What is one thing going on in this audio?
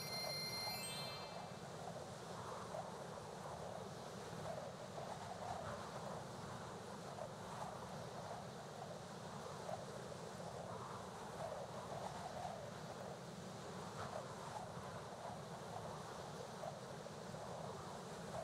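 A man talks casually and close to a microphone.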